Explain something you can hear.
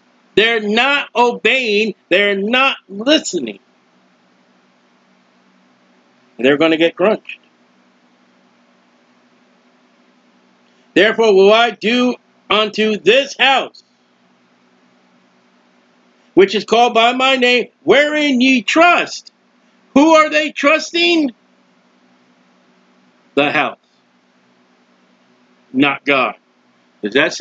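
A middle-aged man speaks calmly into a close microphone, in phrases with pauses between them.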